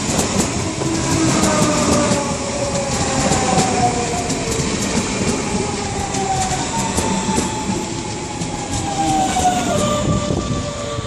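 A train's electric motors whine, their pitch sliding down.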